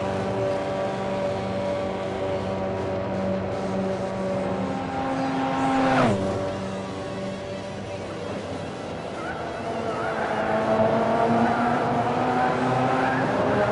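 A racing car engine roars steadily, its pitch rising and falling with the gear changes.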